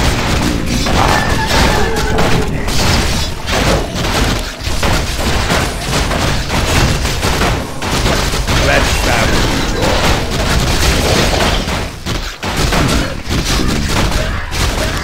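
Fantasy battle sounds clash and crackle with spell effects.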